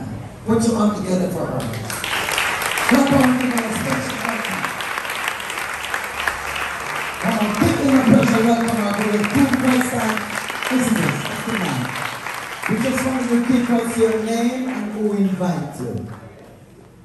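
A congregation sings loudly together in a large room.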